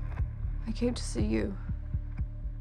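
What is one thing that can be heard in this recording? A young woman speaks softly and hesitantly.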